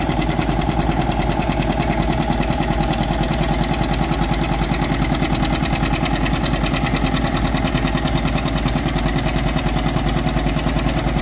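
An old tractor engine chugs steadily under heavy load nearby.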